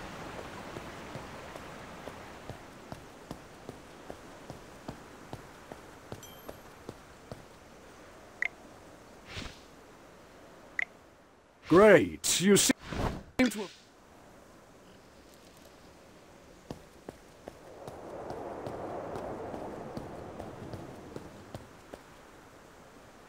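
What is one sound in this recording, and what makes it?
Light footsteps tap steadily on stone.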